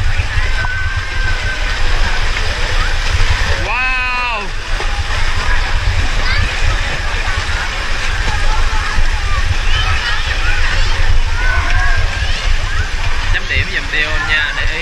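Water splashes and churns as many children swim.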